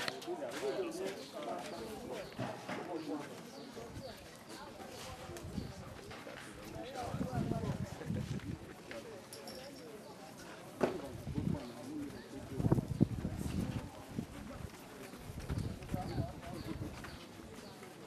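A crowd of people murmurs outdoors.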